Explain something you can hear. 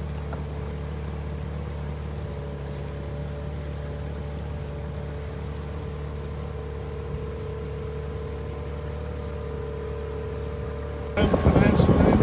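A boat's outboard motor hums steadily.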